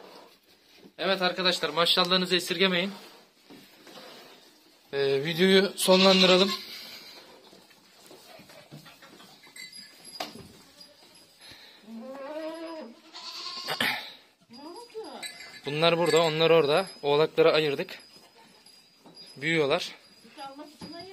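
Goats and sheep bleat loudly close by.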